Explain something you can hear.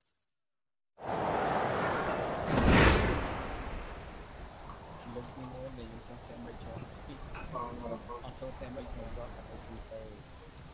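Wind rushes past during a parachute descent.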